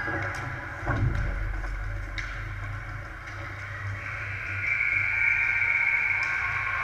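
Hockey sticks click and knock against a puck.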